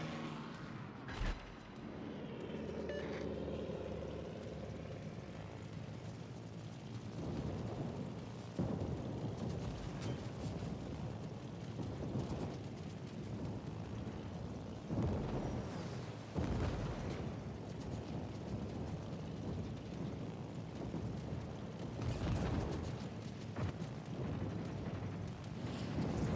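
Anti-aircraft guns fire in rapid bursts.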